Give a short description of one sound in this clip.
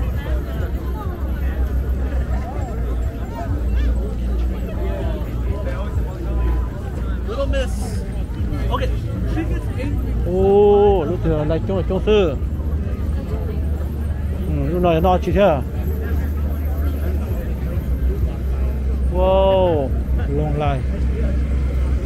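A crowd chatters outdoors in a busy open space.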